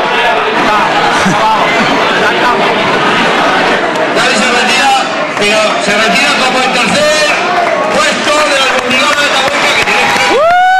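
A large crowd cheers and chatters loudly in an echoing hall.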